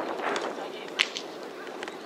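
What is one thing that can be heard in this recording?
A ball smacks into a leather glove.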